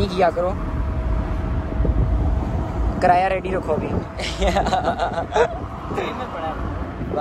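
Teenage boys laugh and talk with animation close by.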